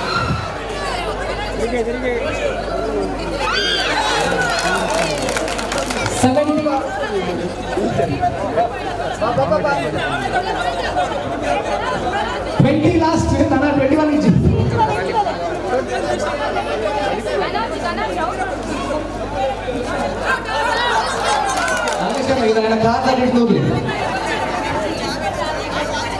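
A crowd of men and women chatter and cheer outdoors.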